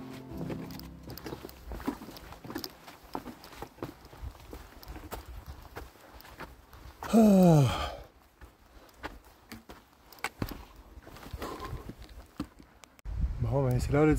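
Footsteps tread on wooden boards and soft ground.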